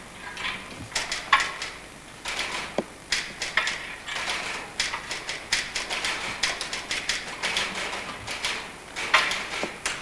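Footsteps scuff and knock on a stage floor.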